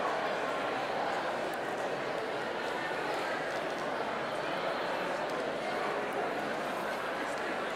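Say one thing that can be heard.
An older man speaks steadily through a microphone in a large room.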